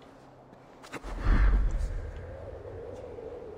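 A heavy thud sounds as a figure lands after a jump.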